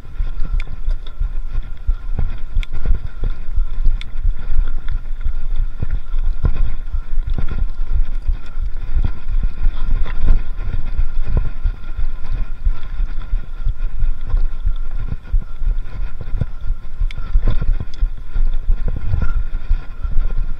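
Wind rumbles steadily against a microphone outdoors.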